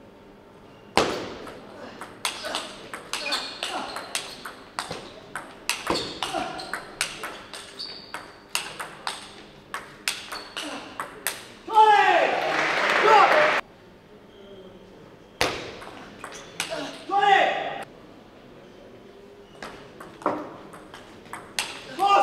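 A ball clicks quickly back and forth off paddles and a table.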